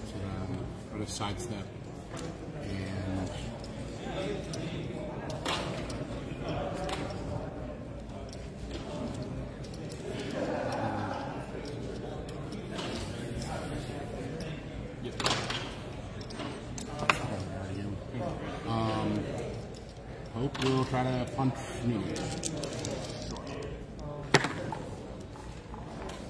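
Several people talk and murmur in a busy, echoing room.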